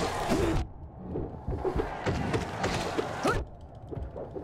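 Sword slashes whoosh and strike sharply.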